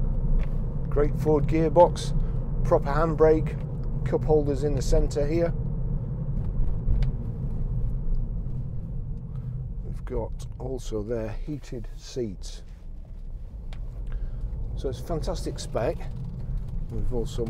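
A middle-aged man talks calmly and clearly close by, inside a car.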